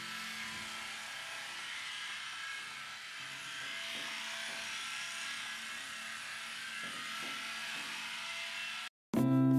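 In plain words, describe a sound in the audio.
A small toy motor whirs steadily in water.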